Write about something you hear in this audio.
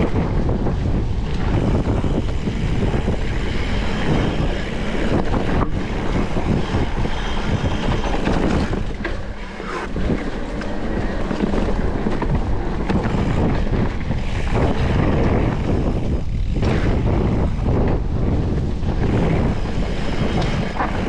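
A bicycle frame rattles over bumps.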